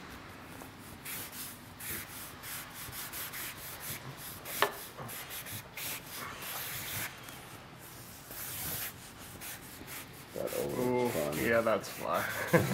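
A felt marker squeaks and scratches across paper in quick strokes.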